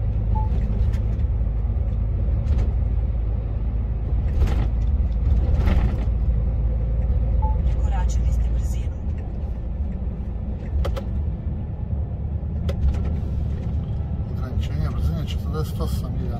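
A heavy vehicle's engine rumbles steadily while driving along a road.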